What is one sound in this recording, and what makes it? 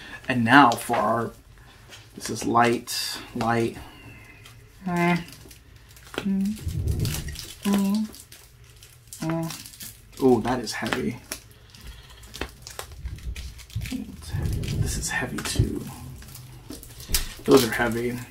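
Foil card packs crinkle and rustle as they are handled.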